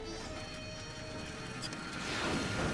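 A metal lever clicks into place.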